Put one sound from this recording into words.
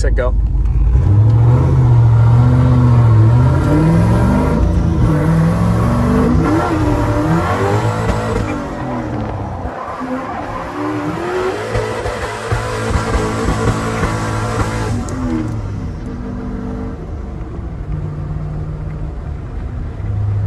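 A turbocharged V8 pickup truck revs and accelerates hard through the gears.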